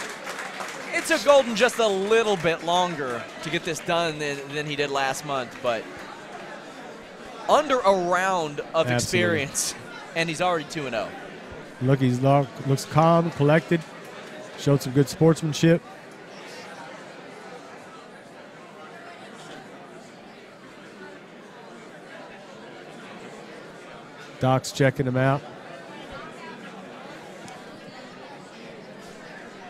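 A crowd cheers and murmurs in a large hall.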